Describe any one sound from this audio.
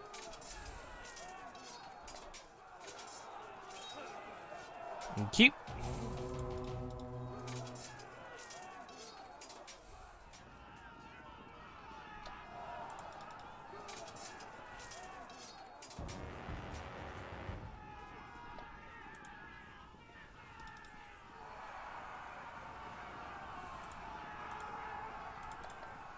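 Swords and weapons clash and clang in a battle.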